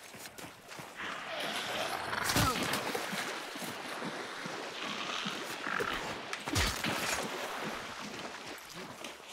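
Water splashes as someone wades through a swamp.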